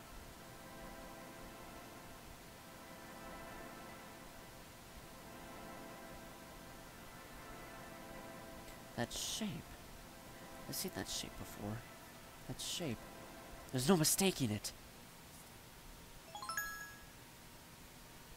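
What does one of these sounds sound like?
Soft electronic music plays.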